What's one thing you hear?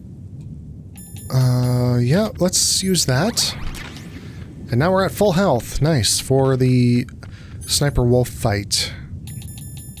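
Short electronic menu beeps sound.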